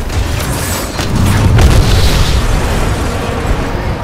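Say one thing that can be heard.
Heavy mechanical footsteps stomp and clank.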